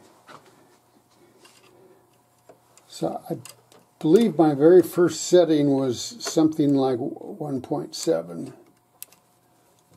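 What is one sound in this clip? Small metal parts click softly against each other.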